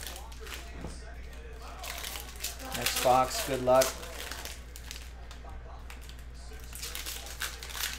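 Foil card packs crinkle and rustle as hands open them.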